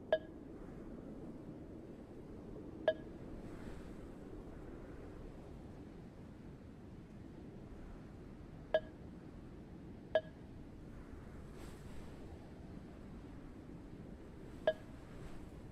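A short soft chime sounds each time a menu choice is picked.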